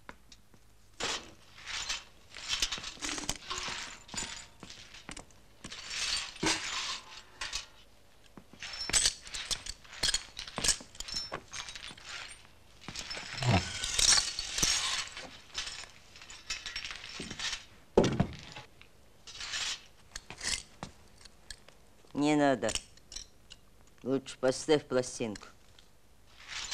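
A twig broom sweeps broken glass across a floor.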